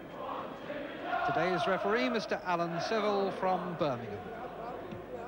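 A stadium crowd sings loudly for a few seconds.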